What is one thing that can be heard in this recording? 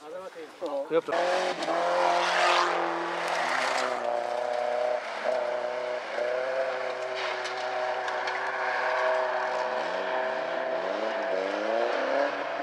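Rally car engines roar steadily along a forest road.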